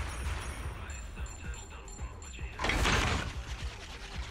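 Coins jingle and clink in a sudden burst.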